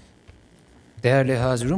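A man begins speaking through a microphone.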